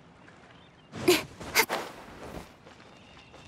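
Footsteps thud and scrape on rock.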